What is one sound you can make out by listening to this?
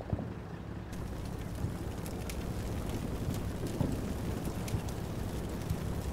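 A tank engine rumbles low and steadily.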